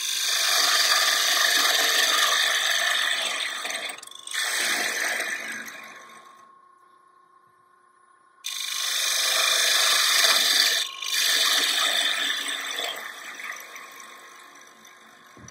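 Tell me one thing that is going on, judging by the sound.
A lathe motor hums steadily.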